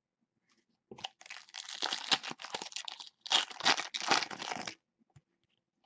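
A card pack's foil wrapper crinkles and tears as it is opened.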